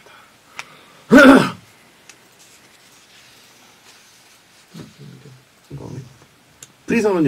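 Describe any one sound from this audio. A second young man answers briefly close to a microphone.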